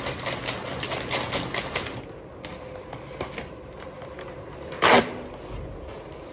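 A machine crinkles and pushes out paper packing with rustling crackles.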